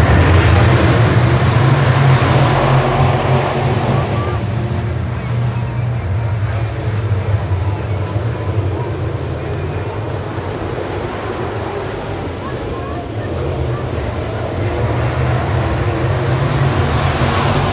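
Race car engines roar loudly as the cars pass close by.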